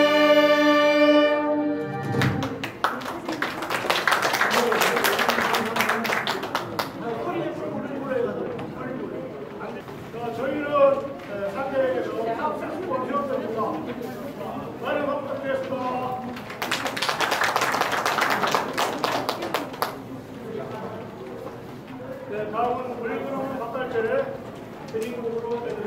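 A saxophone ensemble plays a melody in a large echoing hall.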